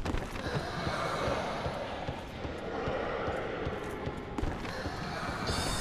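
Armoured footsteps clank and thud on a stone floor.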